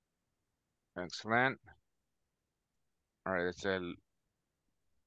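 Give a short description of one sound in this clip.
A man speaks a few short words over an online call.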